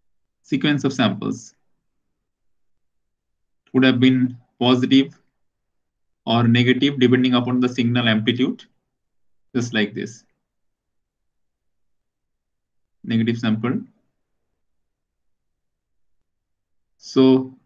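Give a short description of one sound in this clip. A man explains calmly through a microphone, in short phrases with pauses.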